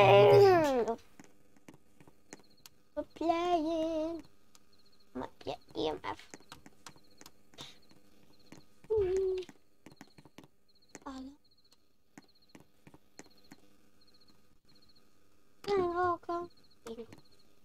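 A boy talks with animation close to a microphone.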